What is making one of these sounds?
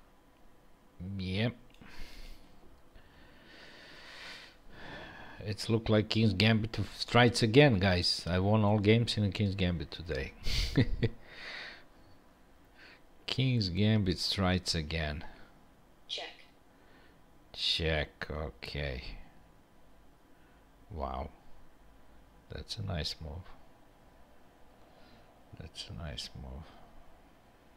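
A middle-aged man talks calmly and close into a headset microphone, in bursts with pauses.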